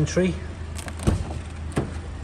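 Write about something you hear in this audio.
A car door clicks open.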